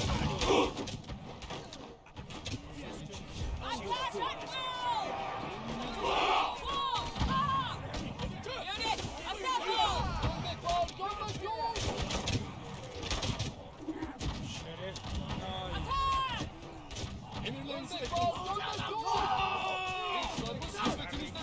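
Weapons clash and clang in a crowded battle.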